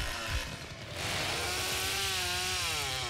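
A chainsaw revs loudly and roars.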